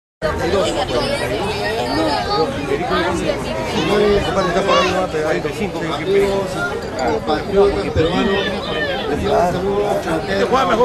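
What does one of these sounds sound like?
A crowd of men and women chatters and laughs nearby outdoors.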